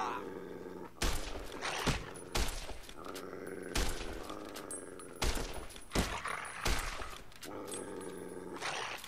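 Gunshots ring out in sharp bangs.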